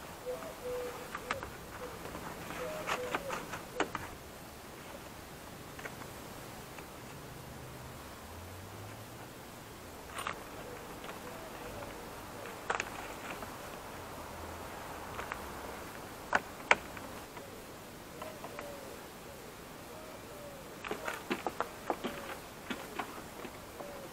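A car door panel rustles and knocks as it is handled.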